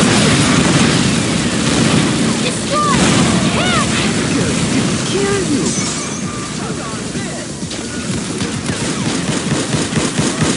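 Shotgun blasts fire in quick bursts.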